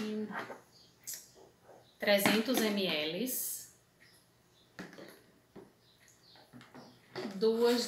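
Plastic containers clatter and click in hands.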